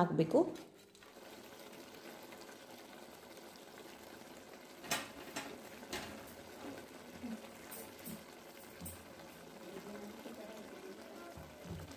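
A pot of food simmers and bubbles softly.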